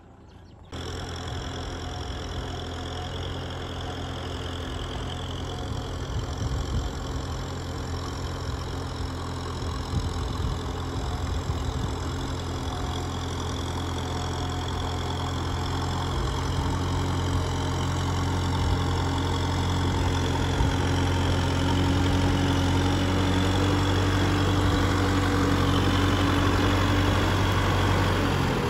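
Tractor wheels churn and splash through mud and water.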